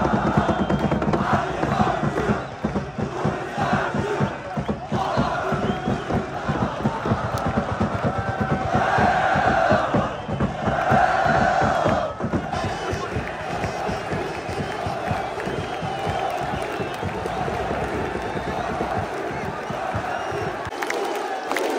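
A group of young men chants and shouts in unison close by.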